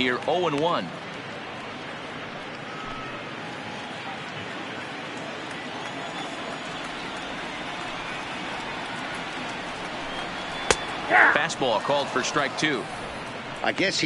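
A large crowd murmurs steadily in a big open stadium.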